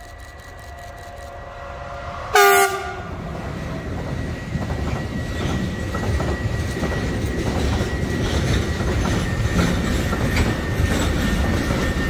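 A freight train rumbles and clatters loudly past close by.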